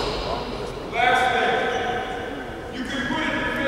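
Sneakers squeak sharply on a wooden floor in a large echoing hall.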